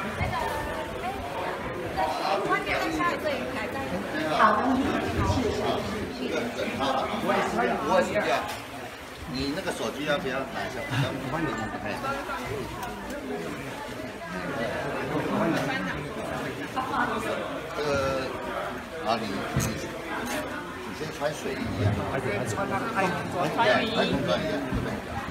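A crowd of men and women chatters close by under a roof.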